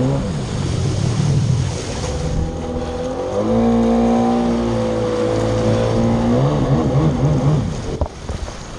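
Water splashes and sprays against a jet ski's hull.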